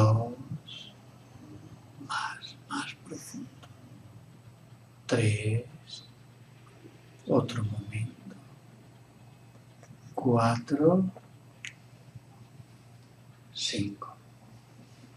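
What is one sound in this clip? A middle-aged man speaks softly and calmly, close by, in short phrases with pauses.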